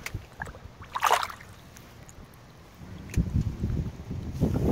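A fish splashes in the water close by as it is let go.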